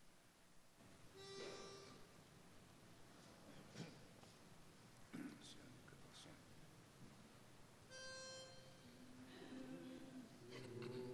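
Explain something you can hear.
A choir of older men sings in a large echoing hall.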